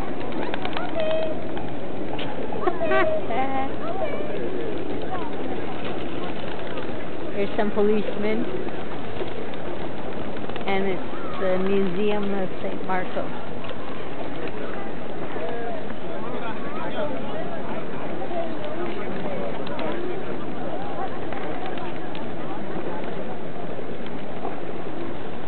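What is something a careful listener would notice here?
A crowd of people murmurs in the distance outdoors.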